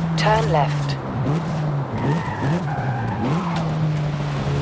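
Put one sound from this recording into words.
A turbocharged four-cylinder car engine blips its revs through downshifts.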